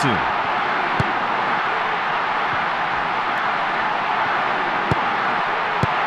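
A ball is kicked with short dull thuds.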